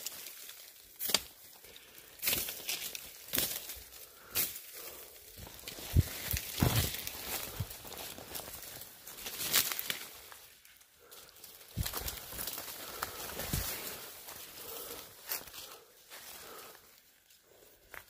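Footsteps crunch and rustle through dry leaves and undergrowth.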